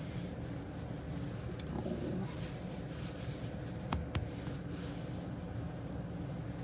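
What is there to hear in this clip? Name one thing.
A hand rubs and ruffles a dog's fur.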